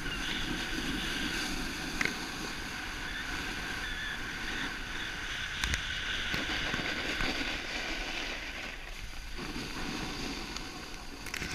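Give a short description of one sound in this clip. Skis scrape and hiss steadily over packed snow.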